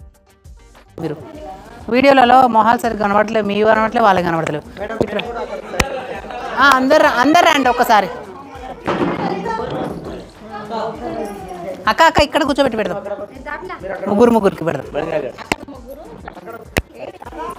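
Several women talk close by with animation.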